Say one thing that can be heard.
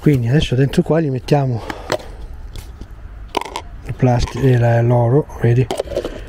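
A plastic lid snaps off a small cup.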